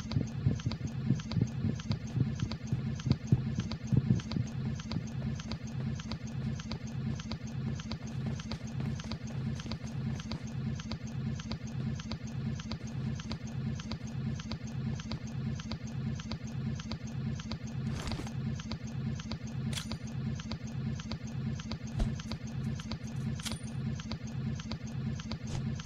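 Quick footsteps thud steadily on a hard floor.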